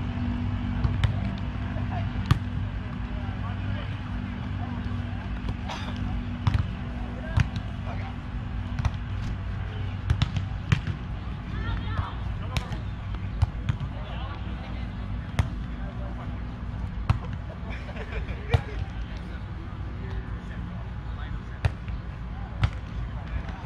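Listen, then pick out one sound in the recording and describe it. A volleyball thumps off players' hands and arms now and then.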